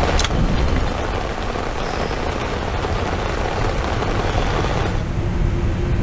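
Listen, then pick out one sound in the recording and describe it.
A waterfall rushes and splashes steadily.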